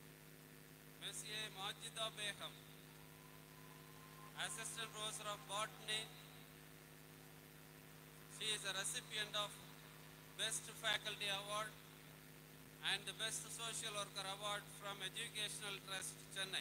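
A man speaks into a microphone over loudspeakers in a large hall, announcing in short bursts.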